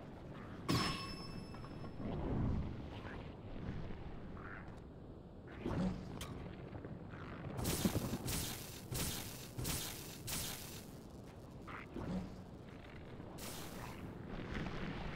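Electric sparks crackle and zap nearby.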